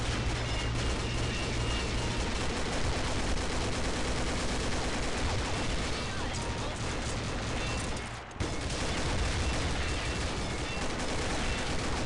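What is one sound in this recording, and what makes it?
Rapid bursts of automatic gunfire ring out.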